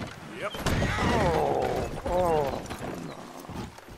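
A body thumps onto wooden planks.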